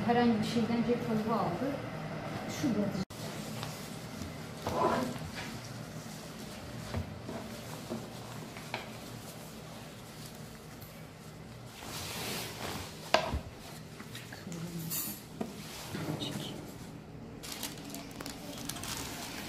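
Fabric rustles and swishes as hands handle it.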